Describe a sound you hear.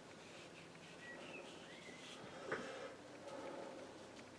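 A broad brush swishes softly across damp paper.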